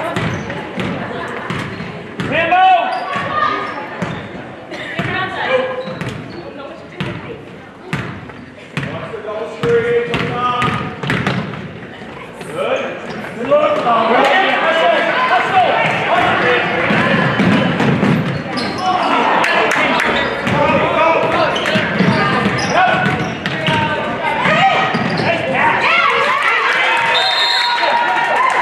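Sneakers squeak and thump on a wooden court in a large echoing gym.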